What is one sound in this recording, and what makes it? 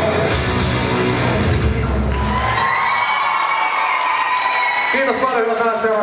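A rock band plays loudly through loudspeakers in a large hall.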